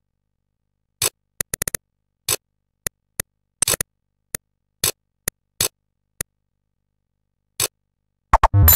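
Game menu selections click.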